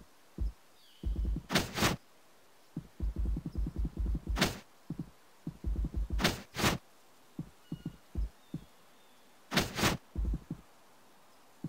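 Quick soft game footsteps patter in bursts.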